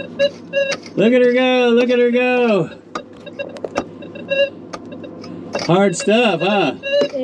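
A metal detector sounds a long, wavering tone.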